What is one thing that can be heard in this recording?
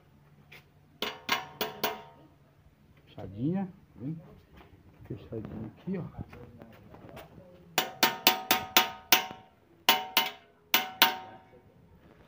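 Pliers click and snap against metal wire.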